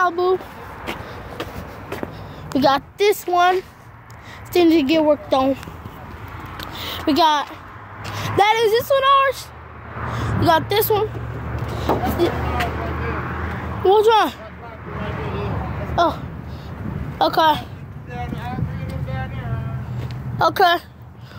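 A young boy talks with animation close to a phone microphone.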